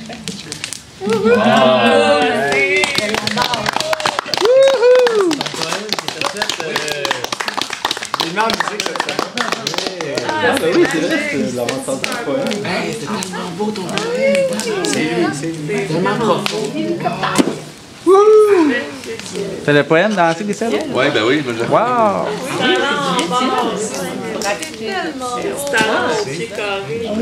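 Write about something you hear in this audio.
A group of young men and women sing together close by.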